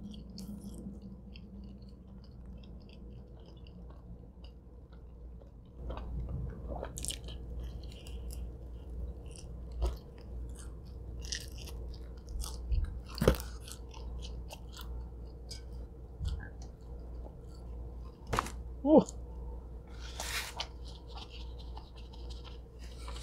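A young woman chews food close to a microphone.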